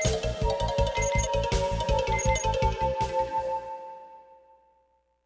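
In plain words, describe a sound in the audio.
Upbeat electronic game music plays with a steady pulsing beat, then fades out.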